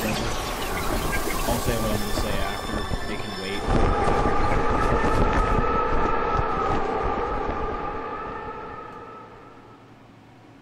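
A loud explosion booms and fades away.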